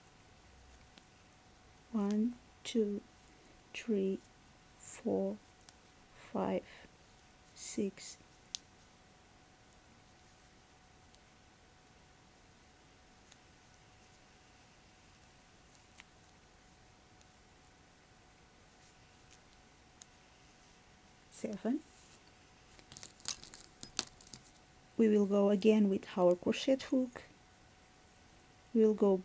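Knitting needles click and scrape softly.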